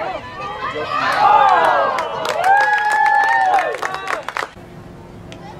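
Hockey sticks clack against a ball and each other.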